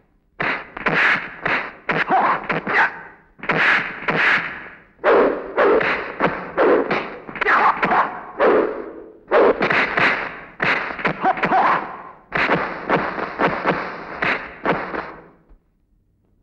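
Men grunt and shout while fighting.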